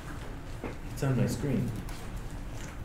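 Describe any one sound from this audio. An older man speaks briefly in a quiet room.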